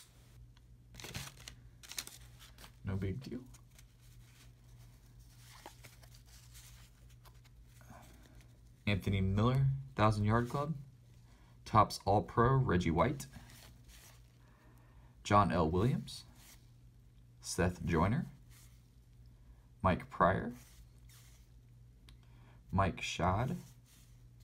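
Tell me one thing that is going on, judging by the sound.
Trading cards shuffle and rustle as hands flip through them.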